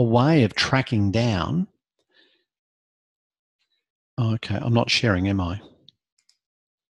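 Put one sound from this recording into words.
A man speaks with animation over an online call, in two short bursts.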